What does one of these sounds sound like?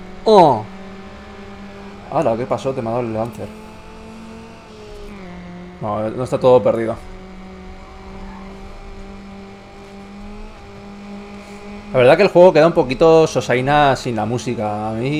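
A racing car engine hums steadily at high speed.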